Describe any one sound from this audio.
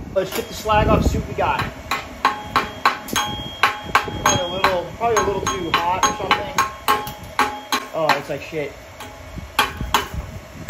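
A hammer strikes metal with sharp, ringing blows at a steady pace.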